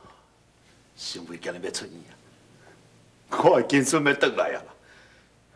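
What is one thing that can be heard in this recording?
An older man speaks happily and with animation, close by.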